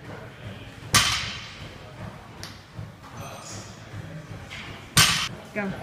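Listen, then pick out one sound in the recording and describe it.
A loaded barbell thuds and clanks as it is set down on the floor.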